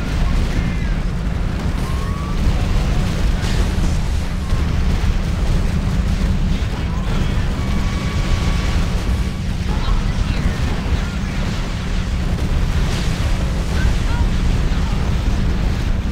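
Laser weapons zap repeatedly.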